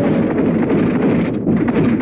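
An anti-aircraft gun fires.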